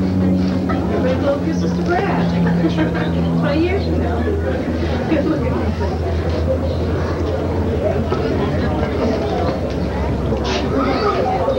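A crowd of men and women chatter and laugh nearby.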